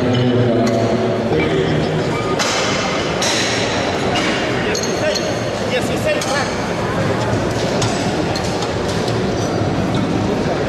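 A crowd in a large hall cheers and shouts loudly.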